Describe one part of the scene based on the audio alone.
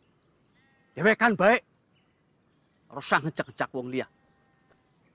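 A young man speaks firmly, close by.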